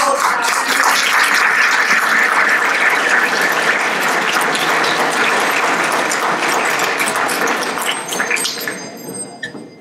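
An audience applauds loudly in a large hall, then the applause dies away.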